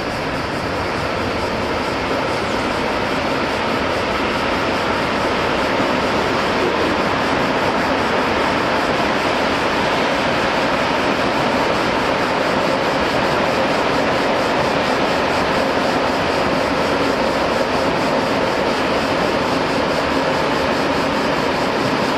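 Diesel locomotives rumble steadily as they haul a freight train.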